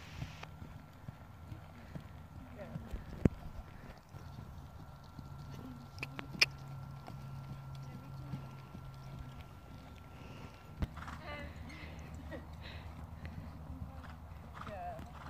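A horse's hooves thud softly on sand as it canters.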